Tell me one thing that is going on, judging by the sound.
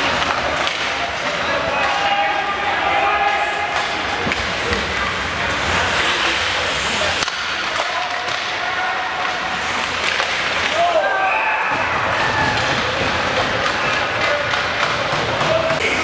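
Skates scrape and carve across ice in a large echoing arena.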